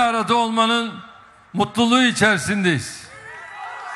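An elderly man speaks forcefully into a microphone, heard through loudspeakers.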